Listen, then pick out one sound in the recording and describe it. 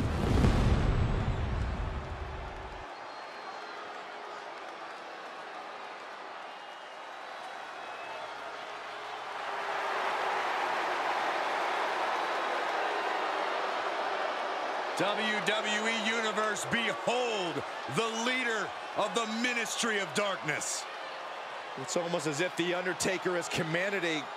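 A large crowd cheers and roars in a big echoing hall, swelling louder partway through.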